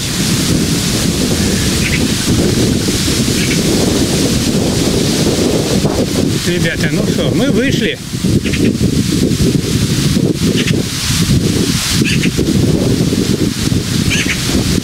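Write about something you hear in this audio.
Leaves rustle in the wind.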